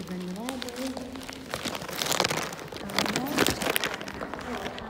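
A plastic bag rustles and crinkles up close.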